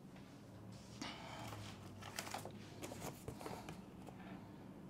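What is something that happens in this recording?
Paper rustles close by.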